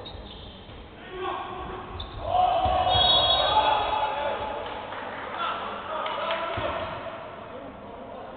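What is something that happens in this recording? Spectators cheer and shout loudly.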